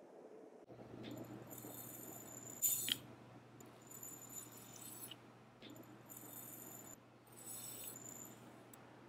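Dry tea leaves patter into a glass bottle.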